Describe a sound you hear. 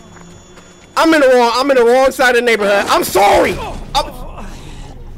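A young man screams loudly into a microphone.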